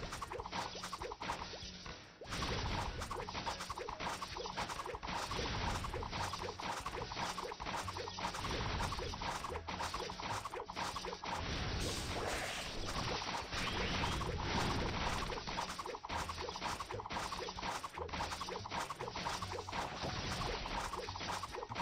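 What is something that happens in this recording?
Electronic game music plays steadily with a beat.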